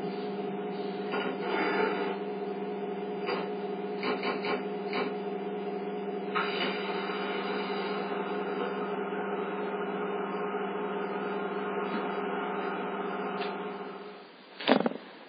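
A train's electric motor hums steadily through a television speaker.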